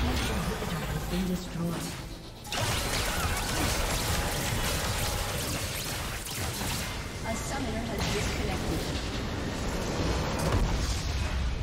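Game battle sounds clash and crackle with spell effects.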